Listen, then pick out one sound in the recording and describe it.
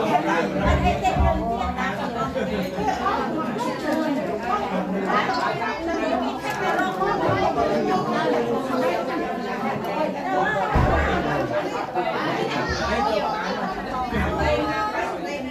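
A crowd of men and women chatter all around, close by.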